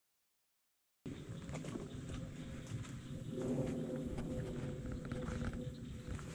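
Footsteps crunch and rustle through dense leafy brush.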